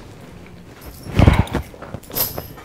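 A thump sounds as someone sits on a sofa.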